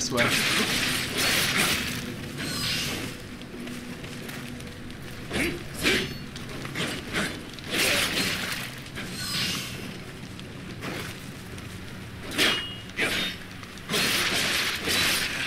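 Blades swish and slash in bursts of quick strikes.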